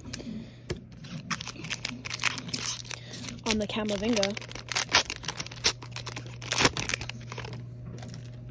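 A foil wrapper crinkles and tears as it is opened.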